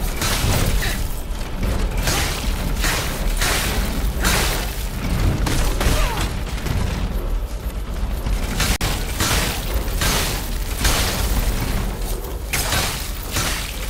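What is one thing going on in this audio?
Blades swing through the air with sharp whooshes.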